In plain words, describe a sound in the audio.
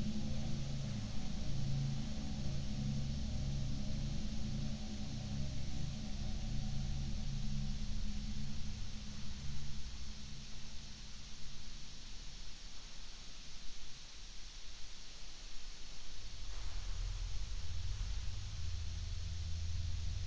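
A band plays muffled, old-time dance music.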